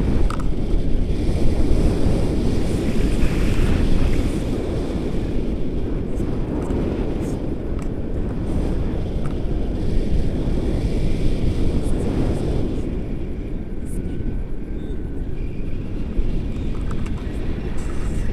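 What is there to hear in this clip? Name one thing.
Strong wind rushes and buffets loudly past a microphone outdoors.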